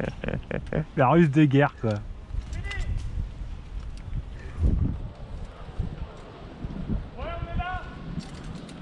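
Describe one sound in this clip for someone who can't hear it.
A man shouts loudly close by.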